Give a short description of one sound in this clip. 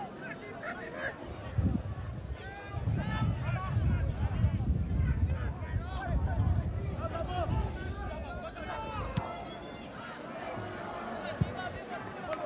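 Men shout and call out across an open field.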